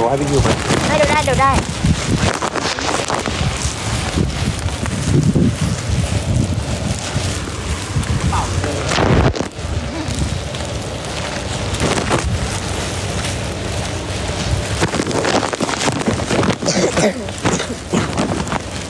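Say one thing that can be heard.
Footsteps splash lightly on wet pavement.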